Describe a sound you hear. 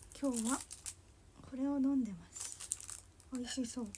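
A plastic drink package crinkles and rustles.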